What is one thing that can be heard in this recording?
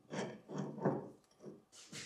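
A ratchet wrench clicks as it tightens a bolt.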